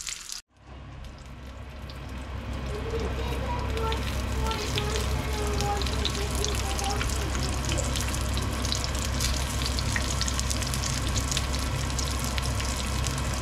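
Oil sizzles and crackles steadily in a frying pan.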